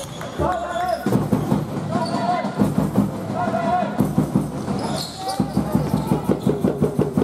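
A basketball bounces on a wooden floor in a steady rhythm.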